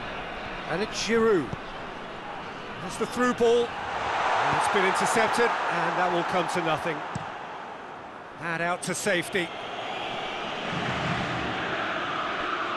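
A large crowd murmurs and cheers steadily in a big open stadium.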